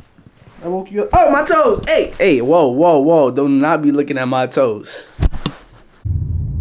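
A young man speaks with animation close to the microphone.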